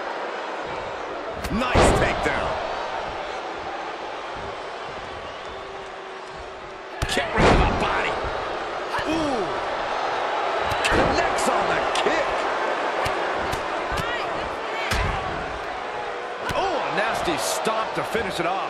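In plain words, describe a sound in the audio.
A large crowd cheers and roars throughout.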